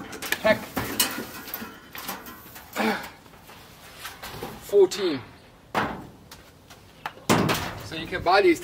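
A metal panel clatters and knocks.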